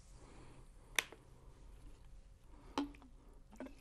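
Glass clinks against glass.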